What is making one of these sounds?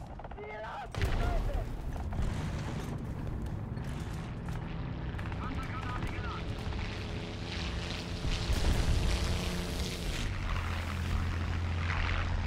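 Tank tracks clatter as the tank moves.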